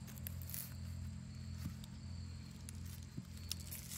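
A hand taps on a hard clay surface.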